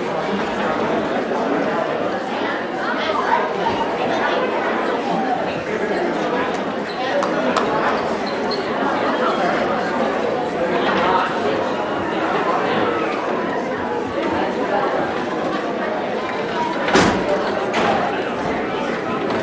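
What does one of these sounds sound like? Several young people talk and call out in a large echoing hall.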